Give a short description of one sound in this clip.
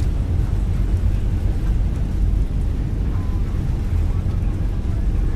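A jet airliner's engines roar steadily during a takeoff roll.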